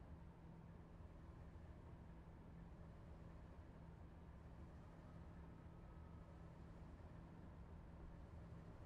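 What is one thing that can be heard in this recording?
Train wheels rumble over the track.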